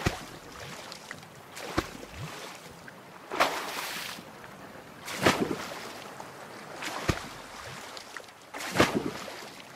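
An oar splashes through water in regular strokes.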